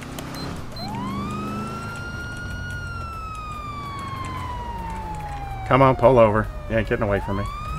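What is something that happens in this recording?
A siren wails, rising and then slowly falling in pitch.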